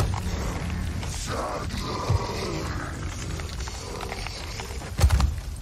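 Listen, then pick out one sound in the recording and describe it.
A monster shrieks and groans.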